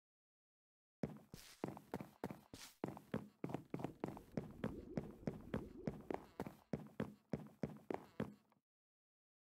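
Footsteps tap steadily across a wooden floor.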